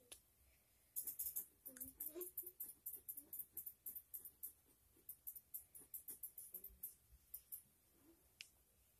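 A pen scratches across paper in short strokes.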